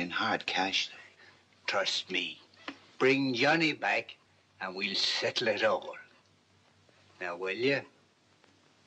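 An elderly man speaks earnestly and with feeling, close by.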